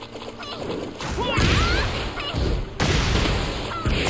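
Punches and kicks land with heavy thuds in a video game fight.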